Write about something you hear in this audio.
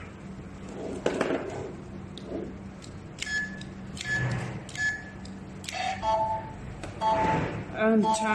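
Plastic buttons click as they are pressed.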